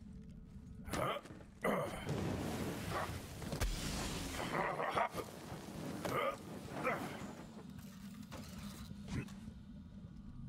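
A gun fires in loud bursts.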